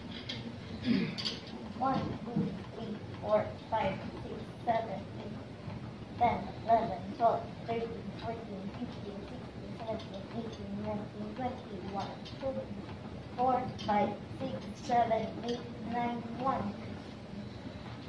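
A woman counts aloud steadily and rhythmically nearby.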